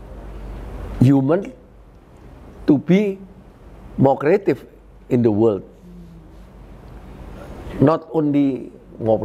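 An elderly man speaks calmly and slowly into a nearby microphone, with pauses between phrases.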